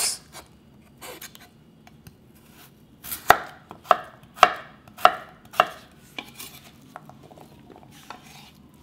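A knife chops onto a wooden board in steady strokes.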